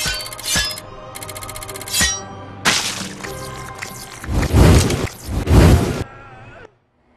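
Bright game chimes and jingles ring out.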